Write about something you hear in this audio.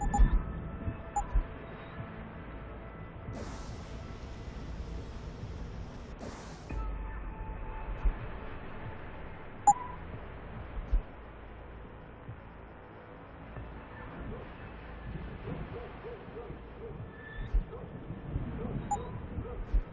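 Short electronic menu blips sound now and then.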